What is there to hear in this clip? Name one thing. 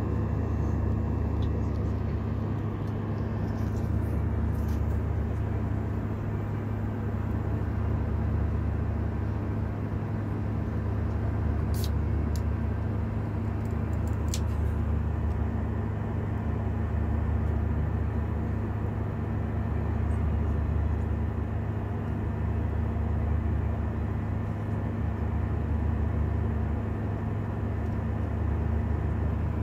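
Jet engines roar steadily inside an aircraft cabin in flight.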